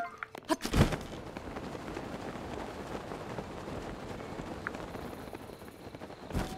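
Quick footsteps rustle through grass.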